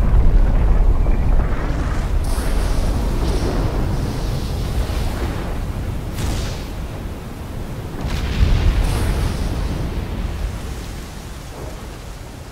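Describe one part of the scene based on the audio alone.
A volcano rumbles deeply as it erupts.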